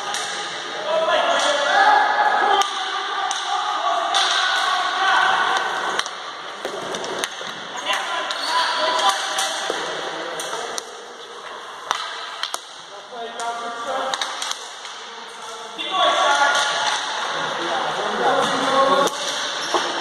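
Skates roll and scrape across a hard floor in a large echoing hall.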